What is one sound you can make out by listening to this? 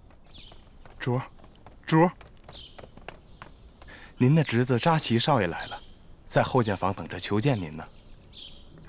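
A man calls out and speaks urgently.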